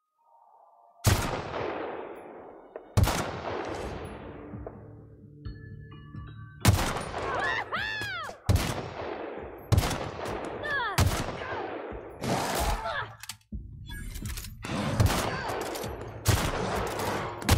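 Rifle shots ring out loudly and echo.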